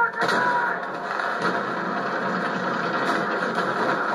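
A rocket explodes with a loud boom.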